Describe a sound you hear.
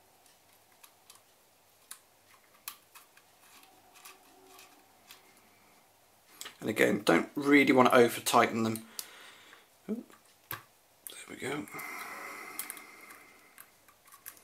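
A small hex key turns a screw with faint metallic ticks.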